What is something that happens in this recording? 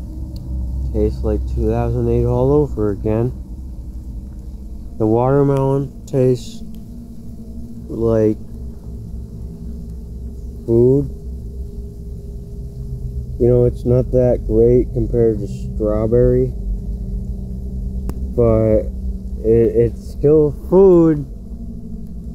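A young man sings close by with a wavering voice.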